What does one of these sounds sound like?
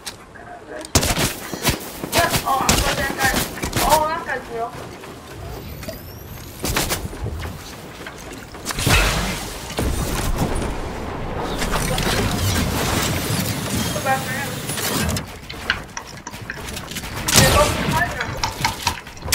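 Wooden walls and ramps clatter into place in quick succession.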